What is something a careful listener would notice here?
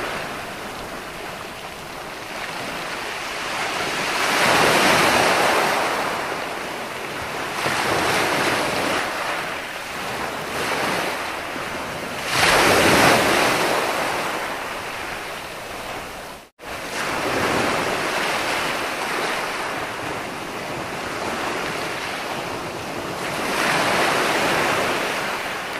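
Water foams and hisses as it spreads over sand.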